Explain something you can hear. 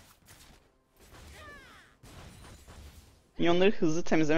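Game spell effects whoosh and zap softly.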